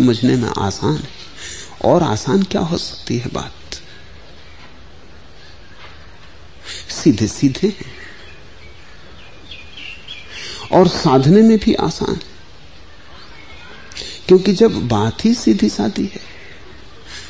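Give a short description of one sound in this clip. An elderly man speaks slowly and calmly, with long pauses.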